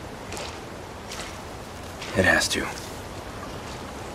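A man's footsteps crunch slowly on a stony path outdoors.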